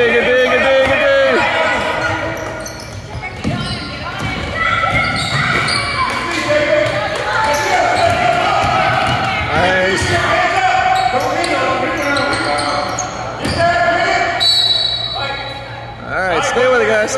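Children shout and call out in a large echoing gym.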